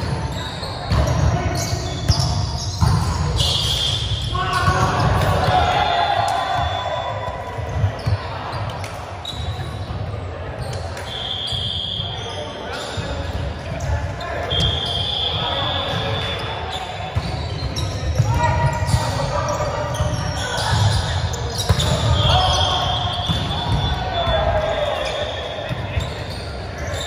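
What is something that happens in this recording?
Shoes squeak sharply on the wooden floor.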